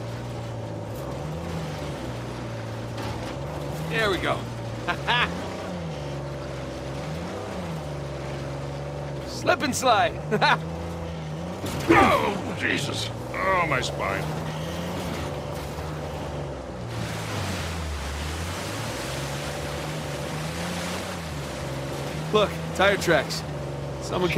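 A jeep engine hums and revs steadily over rough ground.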